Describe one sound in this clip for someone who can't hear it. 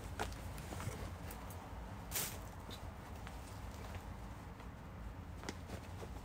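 Clothes rustle and flap close by.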